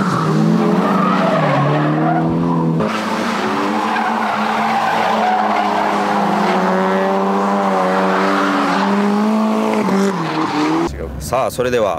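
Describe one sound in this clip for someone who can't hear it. Tyres squeal as cars slide through corners.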